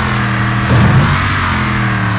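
A vehicle crashes with a heavy thud.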